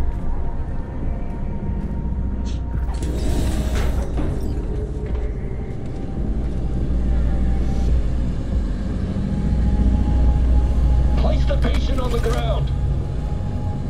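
An aircraft engine hums steadily and low close by.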